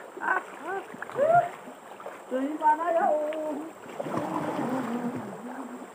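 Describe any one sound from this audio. Water splashes as a man swims.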